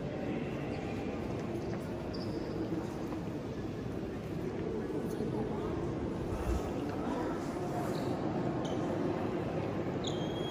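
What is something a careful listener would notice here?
A crowd of visitors murmurs and chatters in a large echoing hall.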